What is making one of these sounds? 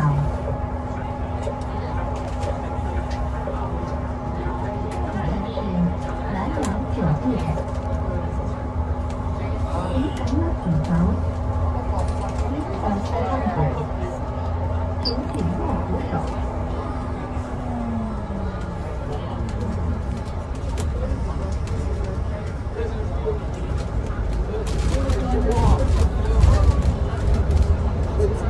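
Tyres roar on the road.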